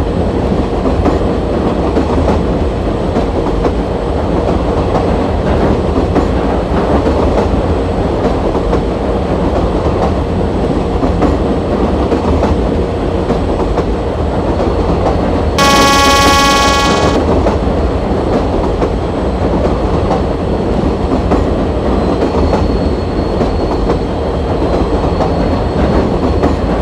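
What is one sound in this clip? A train rumbles steadily along the rails.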